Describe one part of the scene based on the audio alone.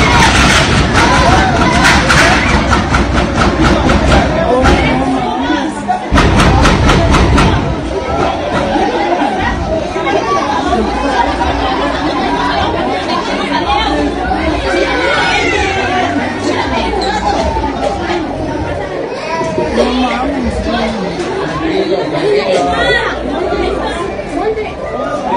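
A crowd of adults and children shouts.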